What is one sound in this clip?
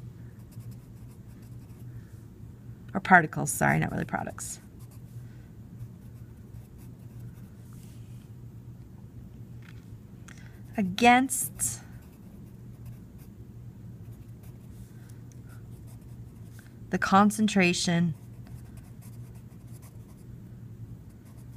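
A pencil scratches across paper as words are written.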